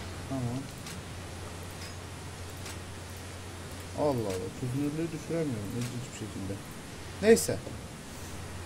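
A young man speaks casually into a close microphone.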